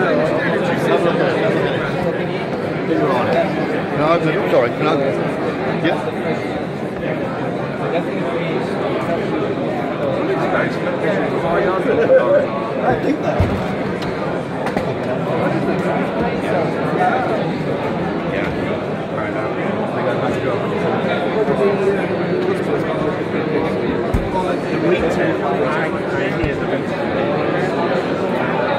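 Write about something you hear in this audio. A crowd chatters all around in a busy hall.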